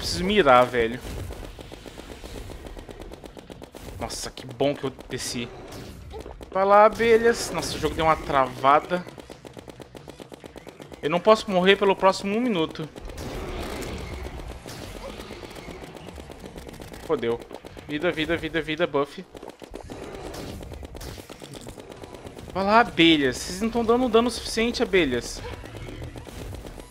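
Rapid laser weapon fire crackles.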